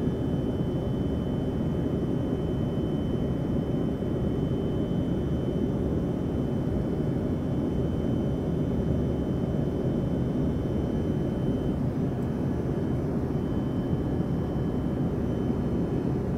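Jet engines roar steadily inside an airliner cabin in flight.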